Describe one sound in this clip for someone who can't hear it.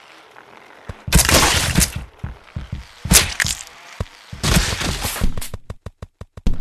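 Wet, squelching splatters burst out loudly.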